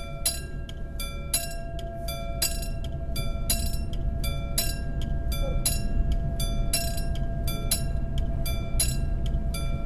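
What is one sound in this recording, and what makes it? A level crossing bell rings in a fast steady rhythm.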